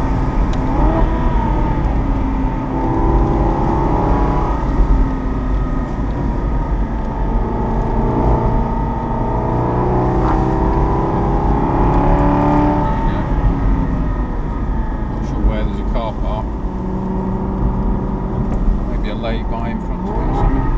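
Wind rushes past an open-top car.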